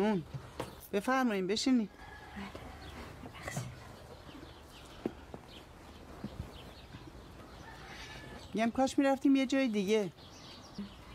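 An older woman speaks calmly nearby.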